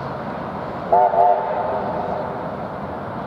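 A steam locomotive's whistle blows loudly for about a second.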